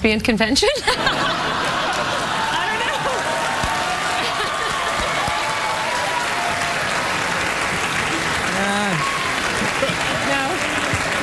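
A studio audience cheers and applauds loudly.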